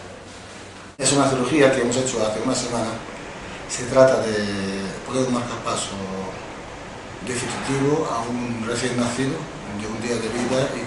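A man speaks calmly and closely, as if into a microphone.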